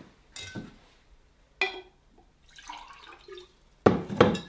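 Juice splashes as it is poured into a glass.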